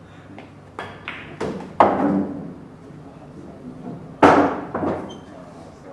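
Pool balls knock sharply against each other and the cushions.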